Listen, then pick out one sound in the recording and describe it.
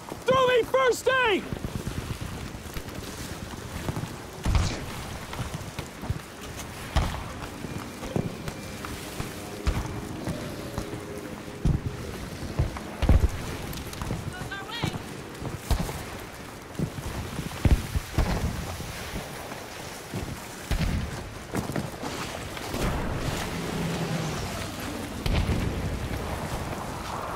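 Strong wind blows steadily outdoors.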